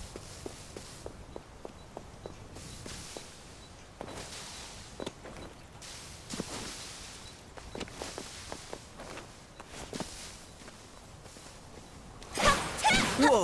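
Light footsteps patter quickly on grass and wooden boards.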